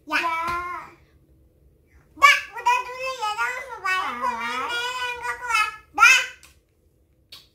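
A young girl talks in an animated voice close by.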